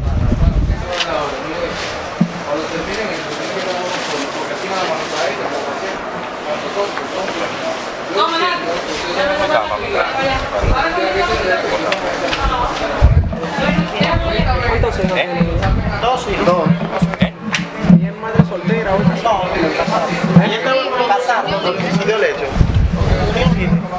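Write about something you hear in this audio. Several adult women and a man talk together nearby.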